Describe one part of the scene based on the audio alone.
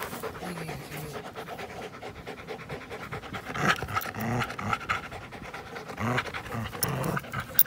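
A dog grunts and whines briefly.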